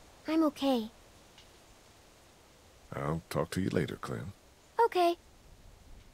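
A young girl speaks softly.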